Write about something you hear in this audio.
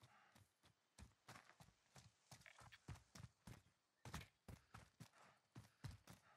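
Footsteps crunch quickly over dirt and rock.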